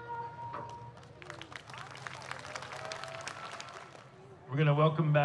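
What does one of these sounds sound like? An audience claps outdoors.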